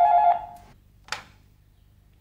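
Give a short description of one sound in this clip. A telephone handset is lifted with a click.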